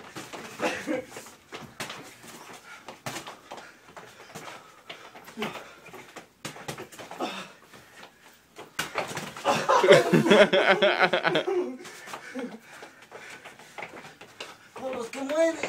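Feet stamp and shuffle on a hard floor.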